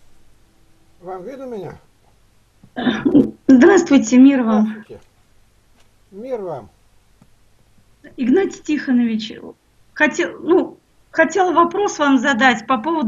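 A middle-aged woman talks with animation over an online call.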